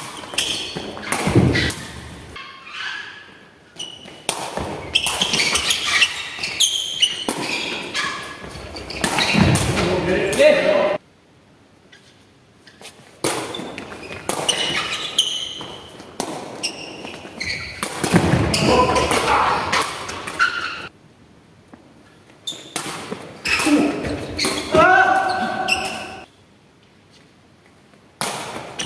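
A ball is kicked and bounces with sharp thumps in a large echoing hall.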